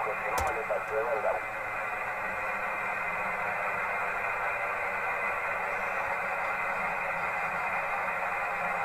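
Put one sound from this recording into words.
Radio static hisses steadily from a receiver.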